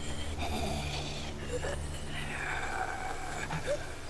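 A zombie groans and snarls nearby.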